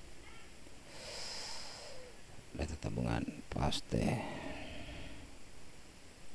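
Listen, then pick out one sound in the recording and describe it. A man speaks briefly and calmly into a nearby microphone.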